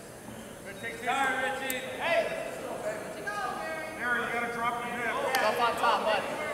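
Spectators shout and call out from the stands in a large echoing gym.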